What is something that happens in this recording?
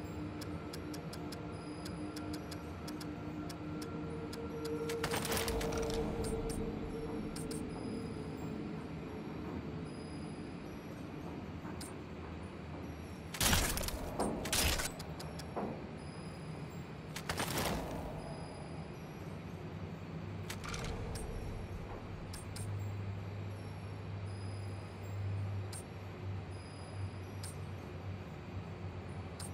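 Soft menu clicks tick again and again as selections change.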